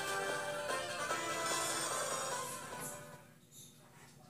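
Game music plays from a small handheld speaker.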